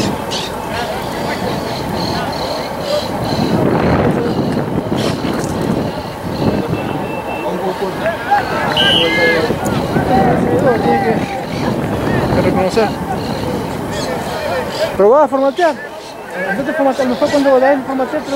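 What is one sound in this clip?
Spectators shout and cheer nearby outdoors.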